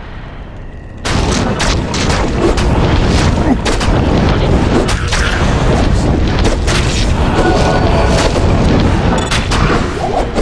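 Magic blasts crackle and roar in a hectic fight.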